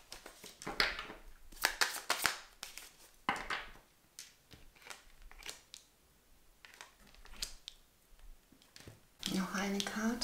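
Playing cards slide and tap on a smooth table.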